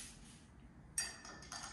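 A stick taps a glass of water with a bright ring.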